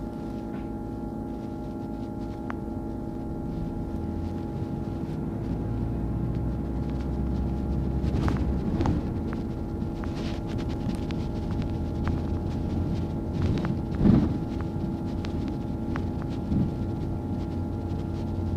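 A bus engine hums and drones steadily from inside while driving.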